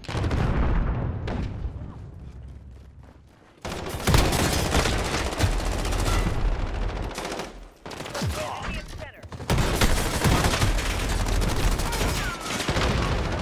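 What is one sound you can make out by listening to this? Shotgun blasts boom loudly, one after another.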